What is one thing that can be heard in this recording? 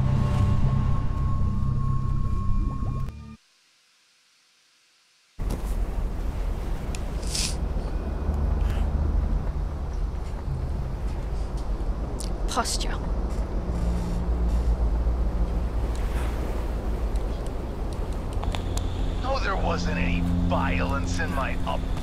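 A young woman talks into a microphone close by.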